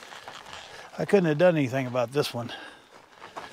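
A man speaks calmly close by, outdoors.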